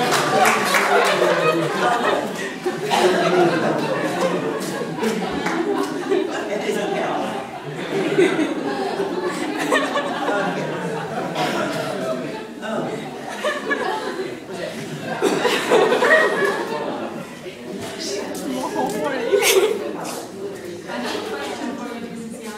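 A man speaks to a room, heard from across an echoing hall.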